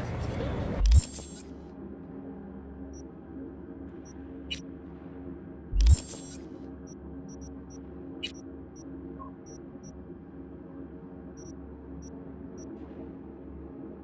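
Soft electronic blips and clicks sound from a menu.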